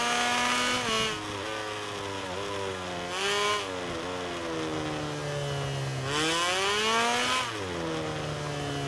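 A motorbike engine drops in pitch as it slows for a bend.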